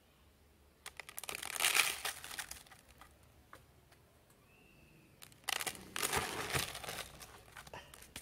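Soil crumbles and rustles as a root ball is handled.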